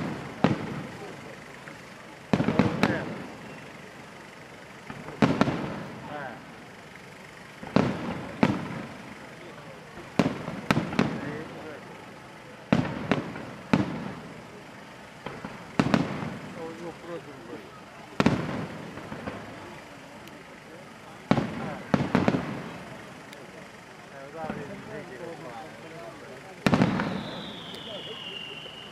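Aerial firework shells burst with sharp booms that echo outdoors.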